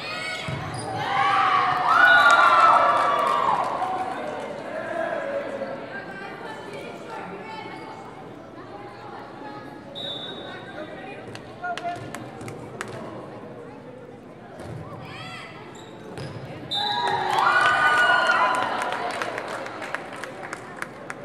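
A crowd of young girls cheers and shouts in an echoing gym.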